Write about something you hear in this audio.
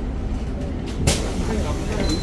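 Bus doors open with a sudden thump.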